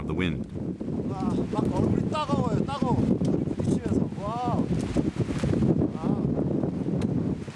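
A young man speaks close by, breathless in the cold.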